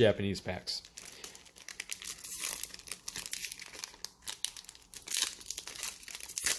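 A plastic wrapper crinkles and rustles as it is torn open by hand.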